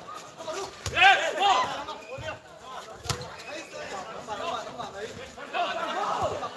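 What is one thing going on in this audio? A crowd of spectators cheers and chatters nearby.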